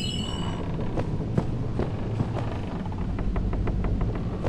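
Footsteps thump quickly across a wooden floor.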